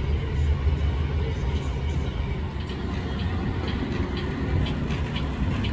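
A large truck engine idles with a low, steady rumble.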